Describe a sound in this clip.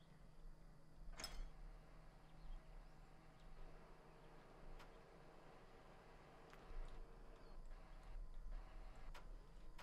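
A truck's diesel engine runs with a steady low hum.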